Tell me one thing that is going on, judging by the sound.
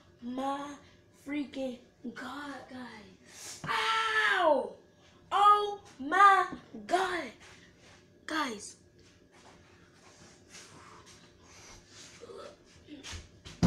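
Feet shuffle on a hard floor.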